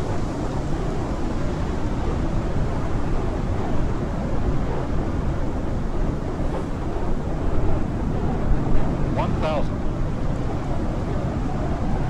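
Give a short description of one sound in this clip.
A small propeller plane's engine drones steadily in the distance.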